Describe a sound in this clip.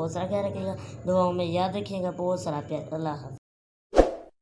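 A teenage boy talks with animation close by.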